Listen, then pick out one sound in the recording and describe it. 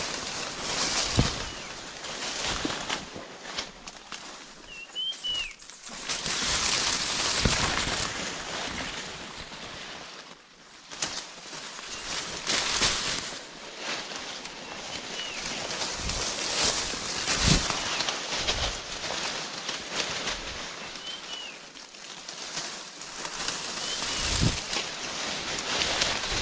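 Leaves rustle and brush as someone pushes through dense undergrowth.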